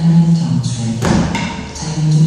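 Feet land with a thud on a rubber floor.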